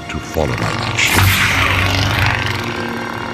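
A lightsaber hums and swooshes through the air.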